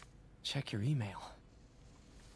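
A young man speaks briefly and calmly.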